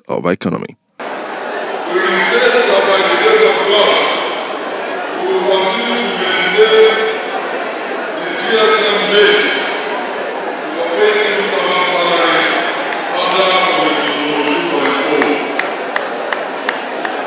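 A man speaks forcefully into a microphone, his voice carried over echoing loudspeakers outdoors.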